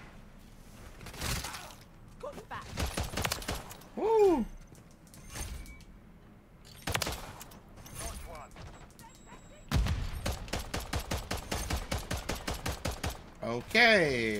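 Gunshots fire, with a rapid burst of automatic fire.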